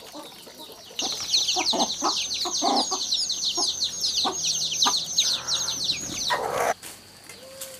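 Chicks peep rapidly and shrilly.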